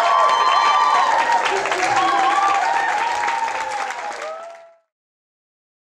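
A steel drum band plays a lively tune in a hall.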